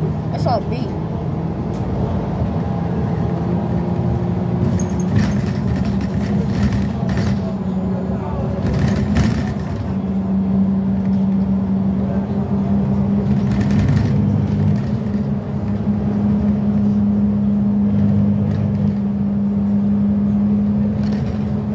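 A bus engine hums steadily as it drives along.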